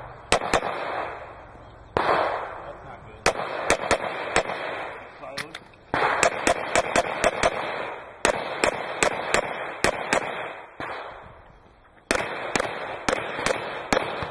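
Handgun shots crack in quick strings outdoors, each echoing briefly.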